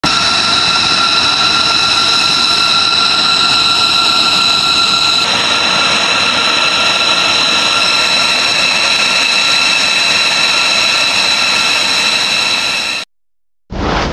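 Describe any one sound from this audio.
A jet engine whines steadily at close range.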